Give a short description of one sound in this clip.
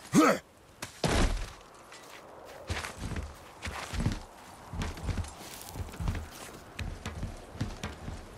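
Thuds and scrapes come as a climber clambers up a rope net.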